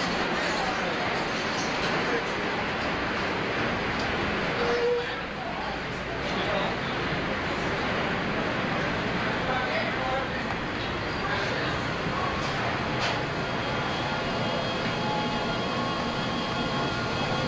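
A steady machinery hum fills an enclosed space.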